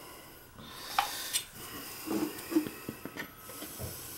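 A copper pipe knocks and clicks into a plastic fitting.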